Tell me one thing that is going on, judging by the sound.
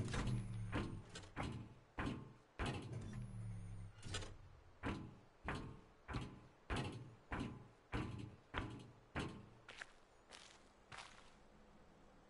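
Footsteps thud steadily on hard ground.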